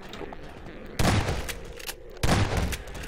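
A shotgun fires twice.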